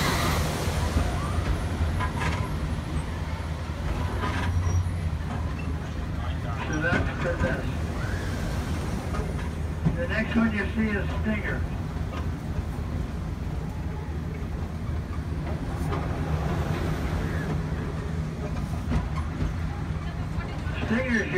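A ride car rumbles steadily along its track.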